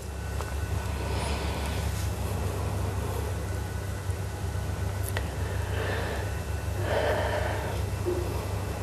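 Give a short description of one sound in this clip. A young woman laughs softly close by.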